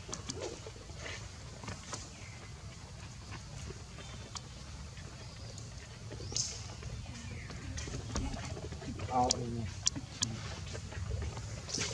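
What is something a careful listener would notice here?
Dry leaves rustle and crackle as a small monkey moves over the ground.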